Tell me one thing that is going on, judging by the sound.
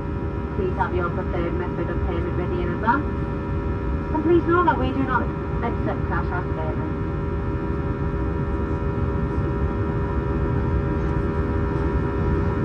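A jet engine roars steadily with a low rumble.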